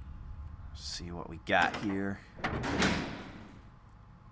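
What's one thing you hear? A heavy metal door creaks slowly open.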